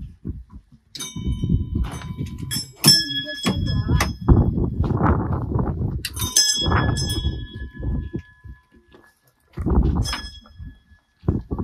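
A small metal bell rings out and lingers.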